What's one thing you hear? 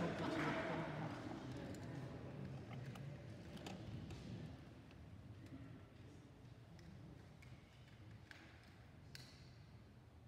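A man speaks calmly at a distance in an echoing hall.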